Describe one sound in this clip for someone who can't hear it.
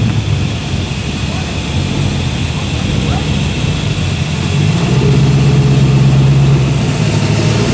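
A sports car engine idles with a deep rumble as the car rolls slowly past.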